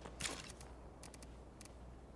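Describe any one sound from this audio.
Soft interface clicks tick in quick succession.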